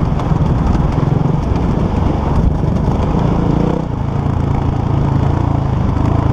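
A dirt bike engine revs loudly up close, rising and falling.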